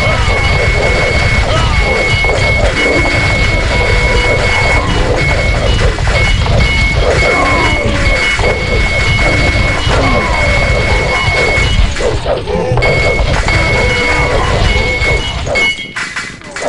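Swords clash and clang in a busy battle.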